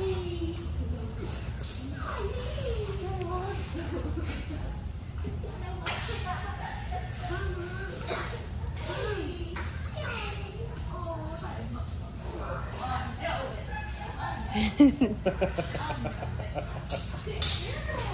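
Several young adults talk casually at a distance in a large echoing room.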